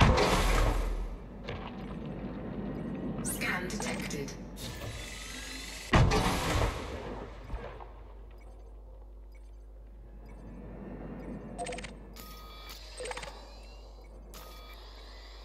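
A spaceship's engines roar in loud bursts, then settle to a low hum.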